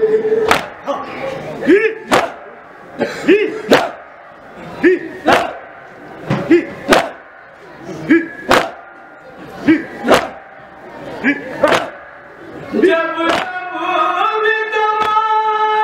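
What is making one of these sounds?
A group of men beat their chests in a steady rhythm.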